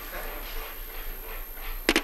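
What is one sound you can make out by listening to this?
A handheld detector clicks sharply at irregular moments.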